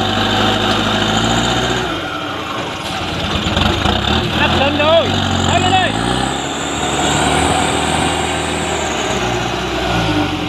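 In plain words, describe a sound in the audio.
A truck engine roars and labours steadily.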